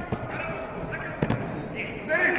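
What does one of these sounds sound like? A judoka's body thuds onto a mat.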